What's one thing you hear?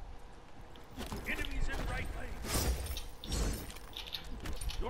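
Magical blasts crackle and whoosh.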